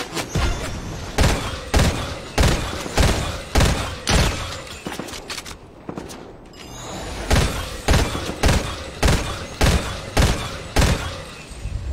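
Gunshots ring out in bursts, one sharp shot after another.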